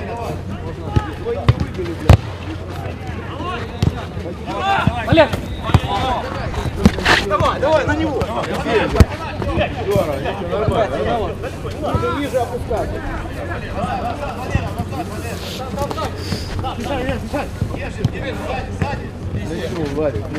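A football is kicked with sharp thumps.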